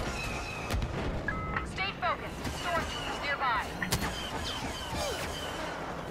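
Laser blasts zap in quick bursts.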